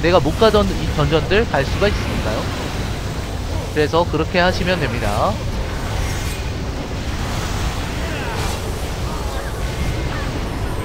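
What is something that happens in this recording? Magic spells crackle and whoosh in a fantasy battle.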